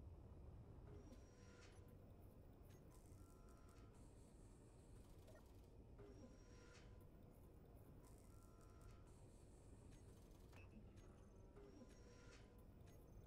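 Game menu sounds click and chime.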